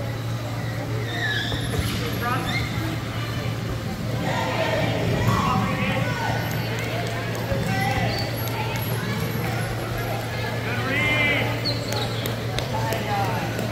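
Young people shout and call out, echoing across a large hall.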